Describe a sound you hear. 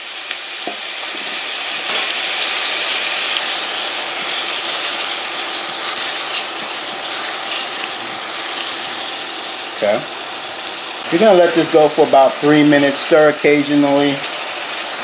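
Onions sizzle steadily in a hot pan.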